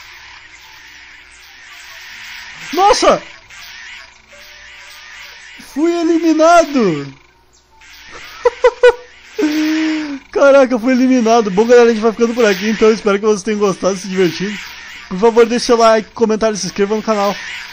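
Small dinosaurs chirp and squawk in quick, pitched calls.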